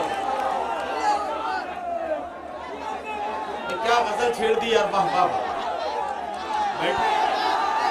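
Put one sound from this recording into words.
A young man recites loudly and with animation through a microphone.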